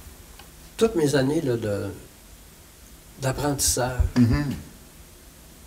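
An older man speaks calmly into a microphone, close by.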